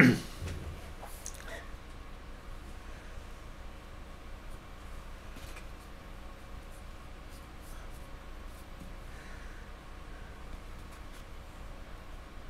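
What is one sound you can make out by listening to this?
A paintbrush dabs softly against a hard surface.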